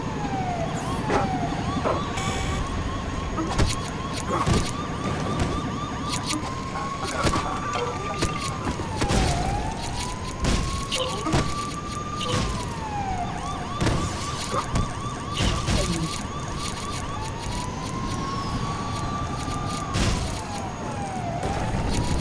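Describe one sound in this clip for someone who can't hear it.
Plastic bricks clatter and scatter as objects smash apart.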